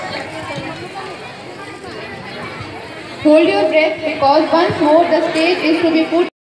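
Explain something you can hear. A crowd of people chatters in a large hall.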